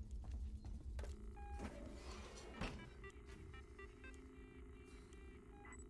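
A computer terminal boots up with electronic beeps and chirps.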